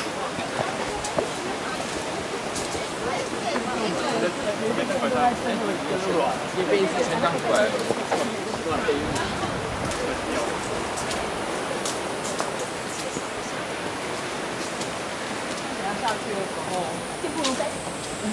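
Footsteps scuff on a paved path.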